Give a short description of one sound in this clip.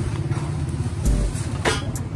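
A metal exhaust pipe clinks against metal.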